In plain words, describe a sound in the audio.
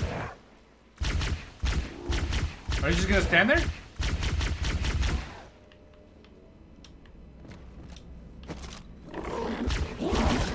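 Rapid energy weapon shots fire in bursts.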